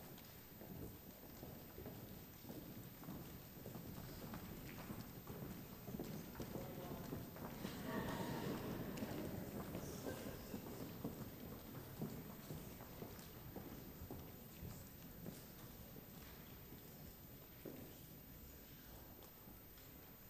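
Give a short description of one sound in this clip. Footsteps shuffle across a wooden stage.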